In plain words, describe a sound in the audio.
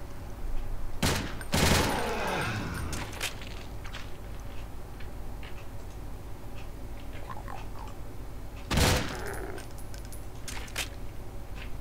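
Gunshots fire in short bursts.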